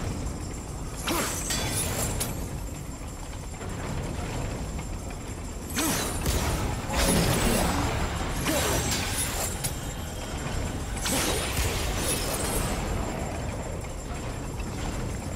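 Large metal wheels rotate with a heavy rumbling grind.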